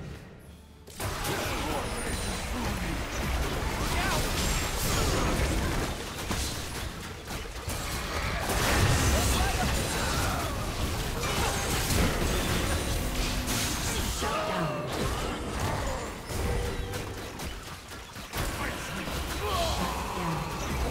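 Magic blasts and hits crackle and boom in a hectic fight.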